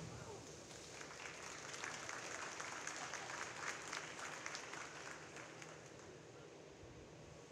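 A crowd claps and cheers in an echoing hall.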